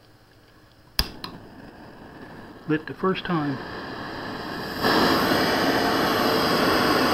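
A gas burner hisses steadily and grows louder.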